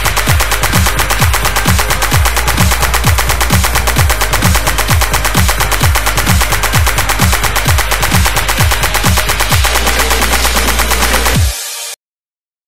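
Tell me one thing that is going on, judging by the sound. Fast electronic dance music plays with a heavy pounding beat, then stops abruptly.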